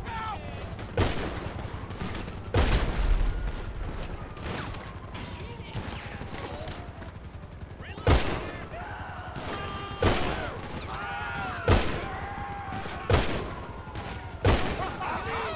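Gunshots crack one at a time, with echoes.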